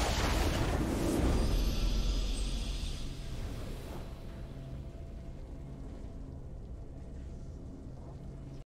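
A triumphant victory fanfare plays and slowly fades.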